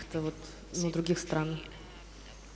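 A young woman speaks briefly through a microphone.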